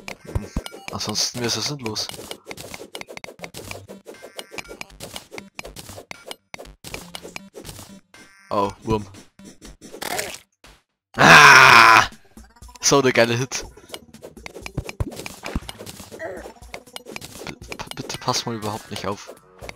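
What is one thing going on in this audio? Digging in a video game clicks and crunches in quick bursts.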